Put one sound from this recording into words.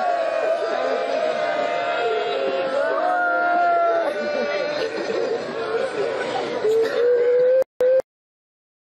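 A crowd of men chants loudly together in a melodic way.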